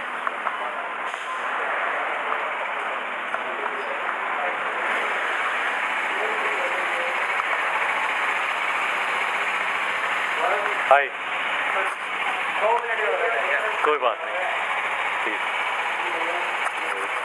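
A crowd of men chatters in a busy, enclosed room.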